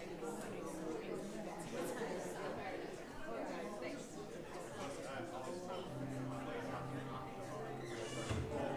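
Many people chatter quietly in a large echoing hall.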